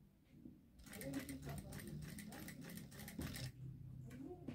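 A sewing machine hums briefly.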